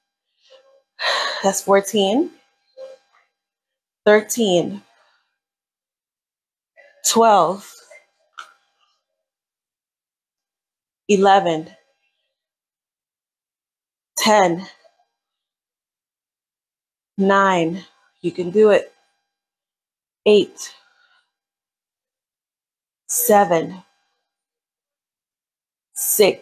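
A woman speaks in short bursts between pauses, close by.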